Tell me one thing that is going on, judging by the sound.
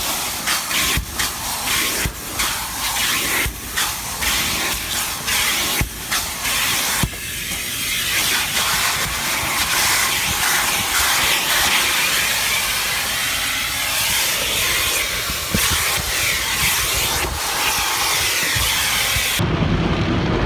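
A vacuum cleaner hose sucks loudly.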